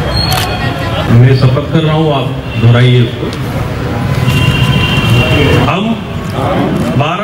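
A man speaks formally into a microphone over a loudspeaker, in an open outdoor space.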